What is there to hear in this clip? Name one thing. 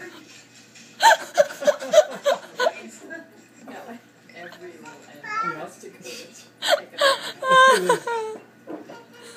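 A toddler babbles and squeals, heard through a television loudspeaker.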